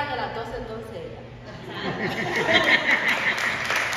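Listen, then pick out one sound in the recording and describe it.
A young woman speaks brightly nearby.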